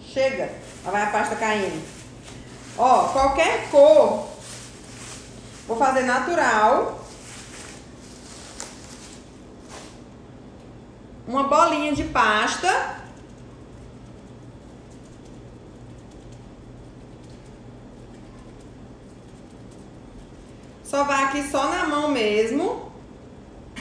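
A woman speaks calmly and close by, in short bursts.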